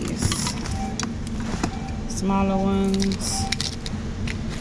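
A ceramic ornament clinks as a hand lifts it from a box.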